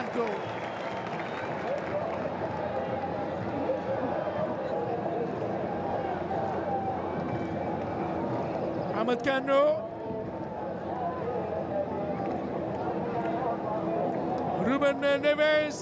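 A large stadium crowd chants and cheers steadily.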